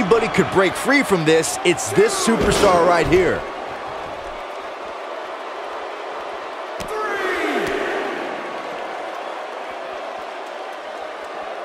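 A large crowd roars and cheers in a big arena.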